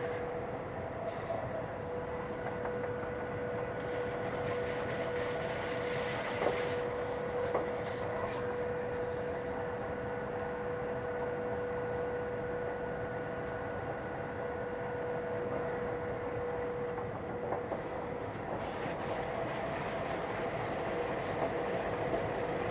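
A train rumbles steadily along the rails with a constant whine.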